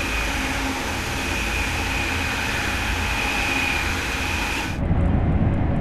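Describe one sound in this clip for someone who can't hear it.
A high-speed train rushes past along the tracks.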